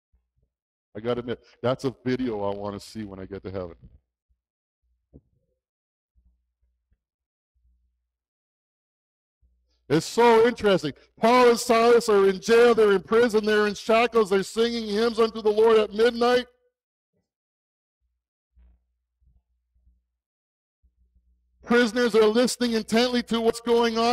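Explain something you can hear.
A man speaks with animation through a headset microphone, with pauses between phrases.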